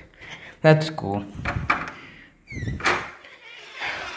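A door latch clicks as a door is opened.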